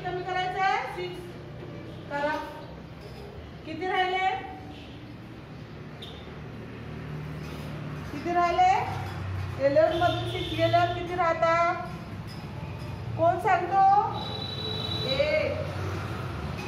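A woman speaks calmly and clearly, as if teaching, close by.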